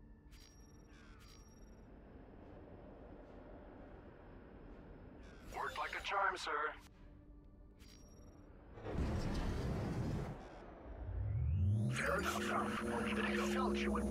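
A spacecraft engine hums steadily, with low rumbling surges.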